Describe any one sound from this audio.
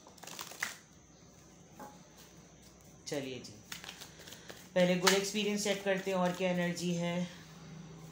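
Playing cards rustle and slide as they are shuffled by hand.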